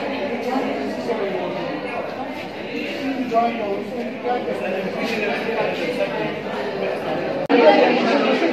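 Many young people chatter at once in a busy room.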